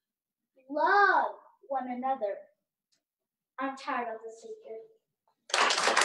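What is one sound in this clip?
A child speaks with animation, heard over an online call.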